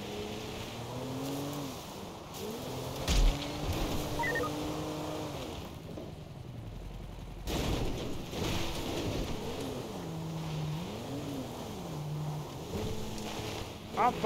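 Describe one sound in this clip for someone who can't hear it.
Tyres crunch over rough ground.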